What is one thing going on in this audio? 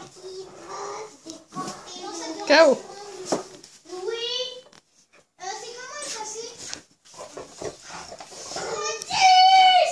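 Bedding rustles as two dogs wrestle.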